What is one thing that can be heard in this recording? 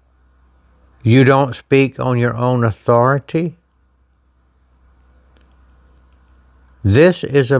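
An elderly man reads aloud calmly, close by.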